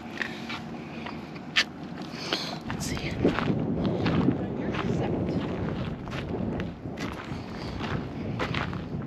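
Footsteps scuff on concrete and gravel outdoors.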